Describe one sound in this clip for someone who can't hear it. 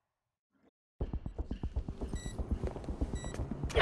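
Footsteps tap on a hard floor in a large echoing hall.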